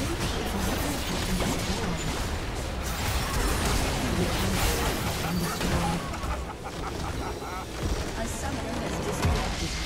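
Game spell effects and attack clashes crackle in a busy fight.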